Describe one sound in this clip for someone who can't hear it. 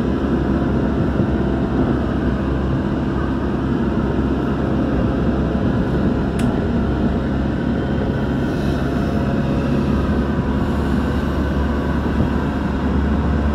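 An electric commuter train rumbles along the track at speed, heard from inside a carriage.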